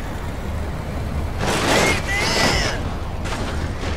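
A bus bangs and rattles over a row of speed bumps.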